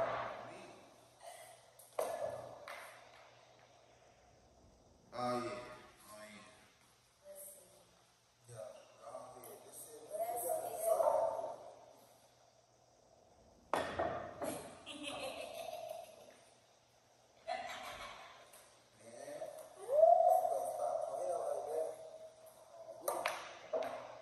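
Billiard balls clack together on a pool table.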